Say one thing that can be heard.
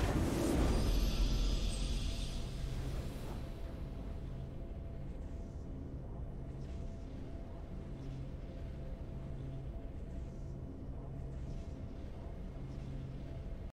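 Triumphant game music plays.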